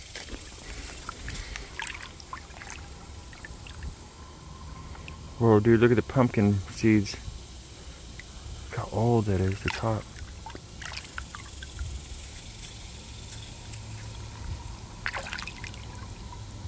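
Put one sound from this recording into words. Water splashes and sloshes as a bottle is swished in shallow water.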